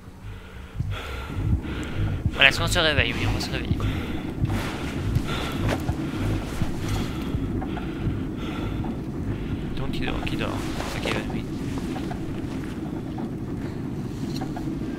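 A rail cart rattles and clatters steadily along tracks.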